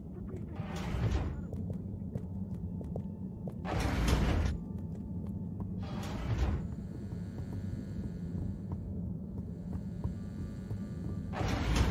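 Footsteps run along a hard floor.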